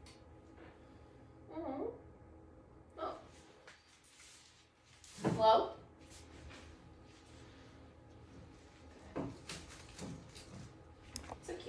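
Flower wrapping rustles and crinkles.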